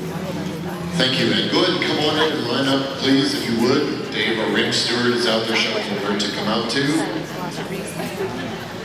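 Men and women chat among spectators in a large echoing hall.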